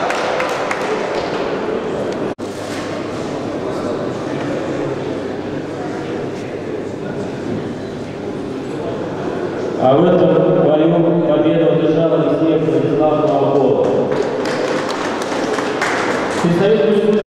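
A crowd of spectators murmurs in a large echoing hall.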